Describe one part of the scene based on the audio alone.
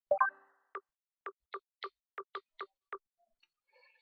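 Short menu clicks tick in quick, even succession.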